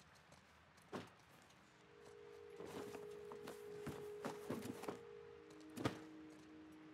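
Objects clatter and knock as shelves are rummaged through.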